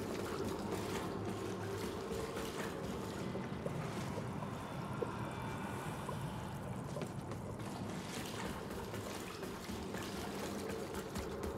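Footsteps splash through shallow water in an echoing tunnel.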